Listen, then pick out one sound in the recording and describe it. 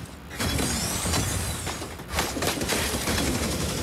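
Weapon fire and blasts crackle in a video game.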